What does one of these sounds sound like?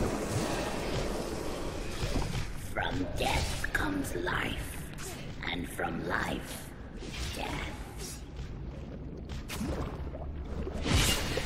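Weapon blows thud and clash in quick succession.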